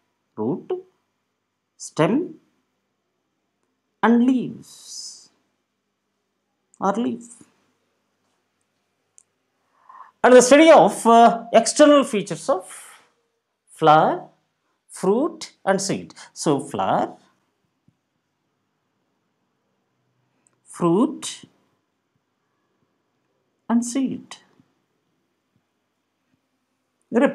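A man speaks calmly and clearly close to a microphone, in short phrases with pauses.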